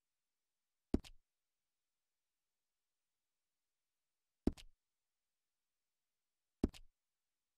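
Soft menu clicks sound a few times.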